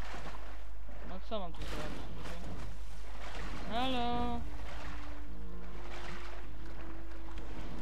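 Water splashes and sloshes as someone swims.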